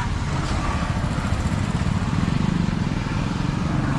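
A motorbike passes on the road.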